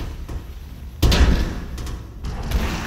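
A loud blast booms in a video game.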